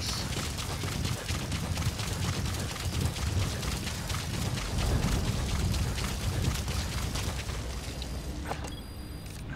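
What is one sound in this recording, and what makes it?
Running footsteps rustle quickly through tall grass.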